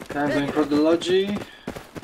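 Footsteps crunch on gravel as soldiers run.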